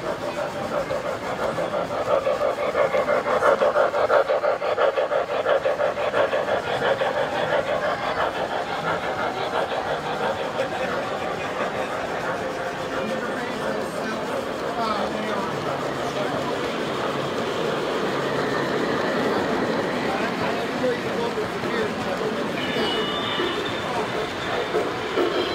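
Model train wheels clatter rhythmically over rail joints.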